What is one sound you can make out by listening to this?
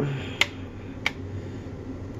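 A plastic jug knocks on a metal counter.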